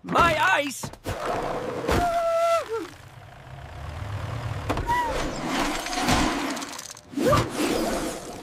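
A large block of ice scrapes across the ground.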